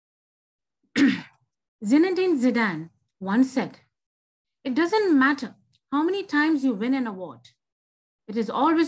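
An older woman speaks with animation over an online call.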